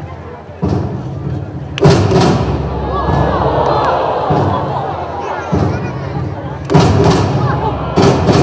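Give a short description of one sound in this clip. A large drum booms in slow, heavy beats.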